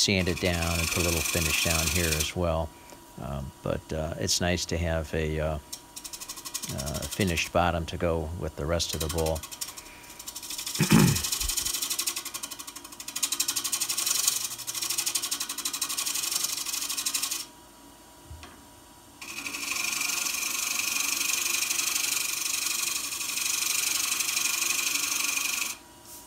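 A wood-turning tool scrapes and hisses against spinning wood.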